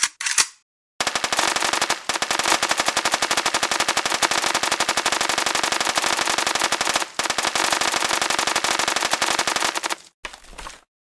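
A rapid-fire gun shoots in a fast stream.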